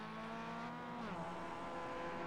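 A four-cylinder racing car engine shifts up a gear, its pitch dropping suddenly.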